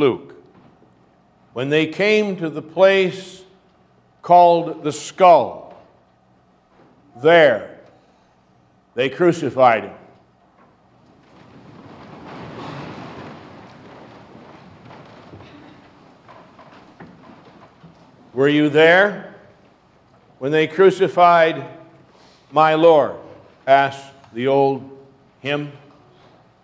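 A middle-aged man speaks slowly and calmly into a microphone, with pauses, in an echoing hall.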